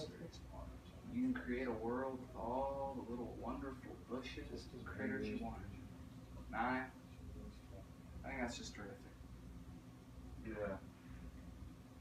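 A young man talks calmly nearby.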